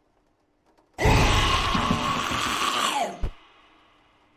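A creature lets out a loud, sudden shriek.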